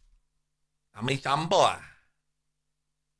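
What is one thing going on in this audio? An older man speaks loudly close to a microphone.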